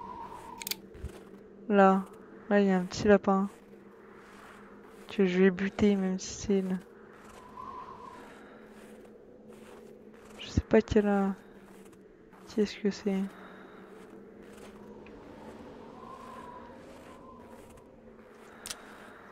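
A horse's hooves thud steadily through snow.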